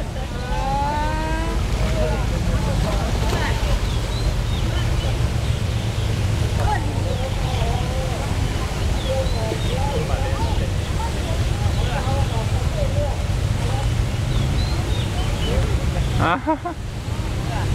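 An elephant wades through water with soft splashing.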